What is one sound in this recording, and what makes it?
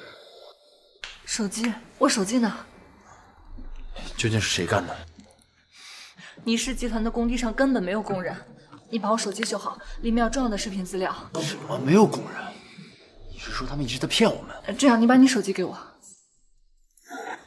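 A young woman speaks with worry, close by.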